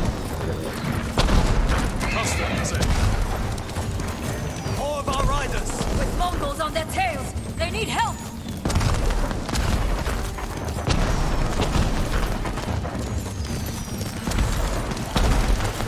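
A horse gallops, hooves thudding rapidly on soft ground.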